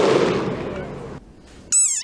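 A drum booms along with the crowd's shouts.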